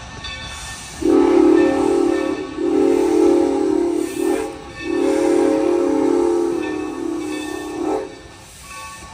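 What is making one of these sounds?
A steam locomotive whistle blows loudly in long blasts.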